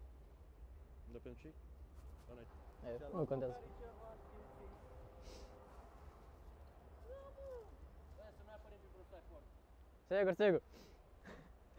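A man talks outdoors nearby.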